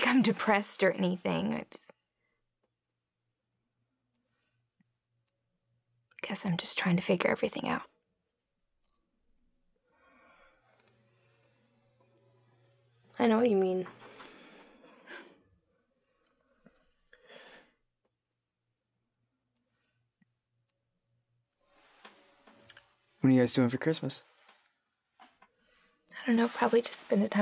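A young woman speaks softly and close by, in short bursts.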